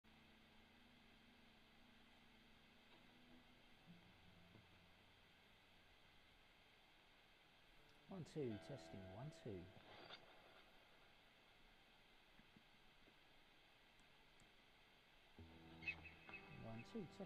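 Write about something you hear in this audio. An electric guitar plays short bursts of notes, with pauses between.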